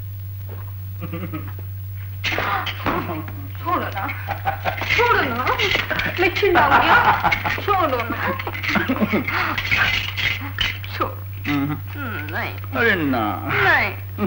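A man speaks forcefully.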